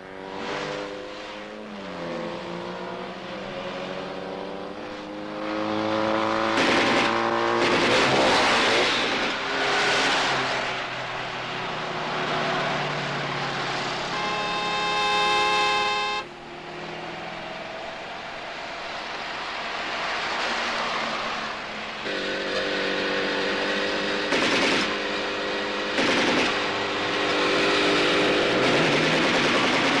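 A motorcycle engine revs and drones as the motorcycle rides along a road.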